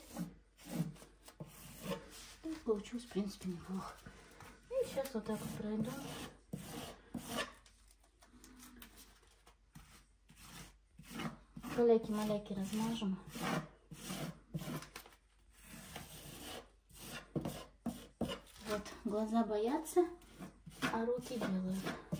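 A brush scrapes and dabs on a wall.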